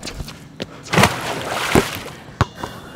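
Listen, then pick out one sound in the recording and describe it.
A basketball thuds against a backboard and rim.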